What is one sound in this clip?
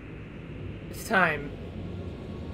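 A sharp whoosh sweeps quickly downward.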